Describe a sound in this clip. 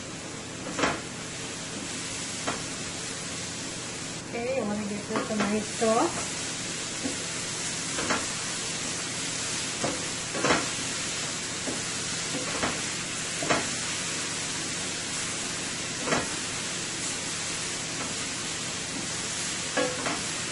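A wooden spatula scrapes and knocks against a metal pan.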